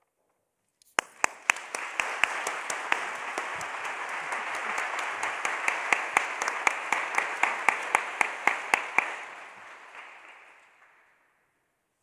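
Hands clap in steady applause that slowly fades.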